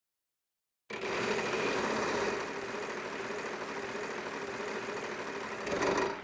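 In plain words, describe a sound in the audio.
A game show wheel spins with rapid clicking.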